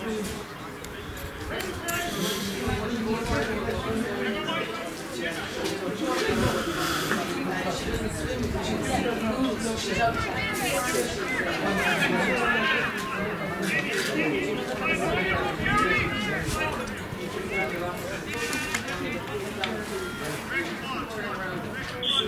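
Young women shout and call to one another across an open field.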